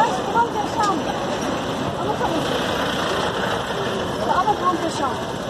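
A fire engine's motor rumbles nearby.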